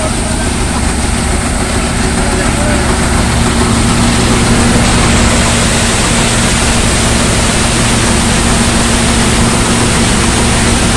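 A threshing machine engine drones loudly and steadily.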